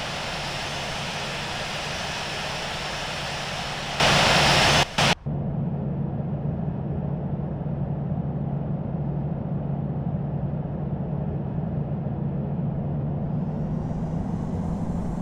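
Jet airliner engines hum and whine steadily at idle.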